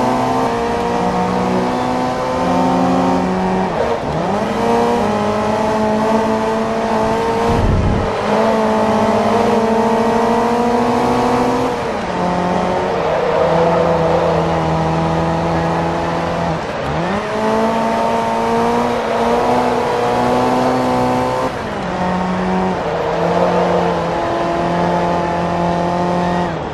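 A racing car engine roars loudly, revving up and dropping sharply with each gear change.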